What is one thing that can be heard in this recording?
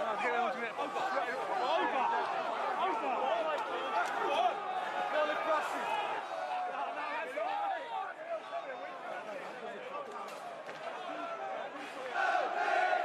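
A crowd of men shouts and jeers outdoors.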